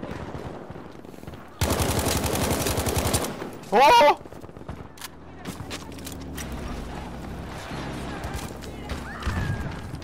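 Explosions and gunfire rumble in the distance.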